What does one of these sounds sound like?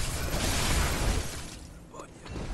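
A blade swings through the air with a loud whoosh.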